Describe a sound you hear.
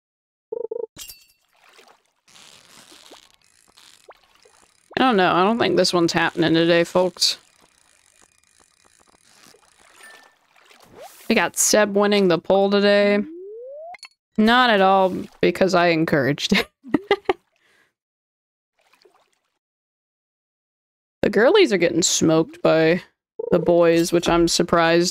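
A short game chime rings as a fish bites.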